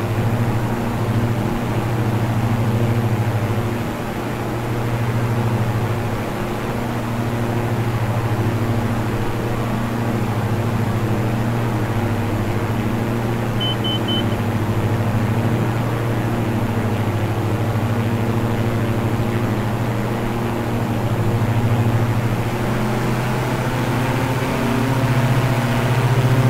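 Twin propeller engines drone steadily with a low hum.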